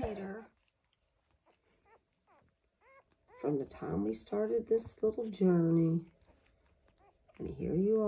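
Newborn puppies squeak and whimper close by.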